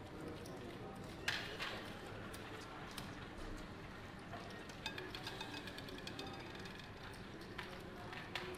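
A roulette ball rolls and rattles around a spinning wheel.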